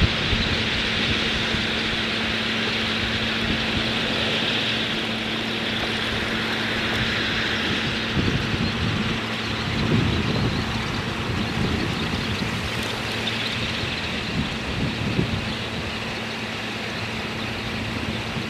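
A large flock of geese honks and chatters noisily.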